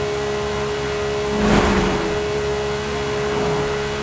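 A car passes by with a whoosh.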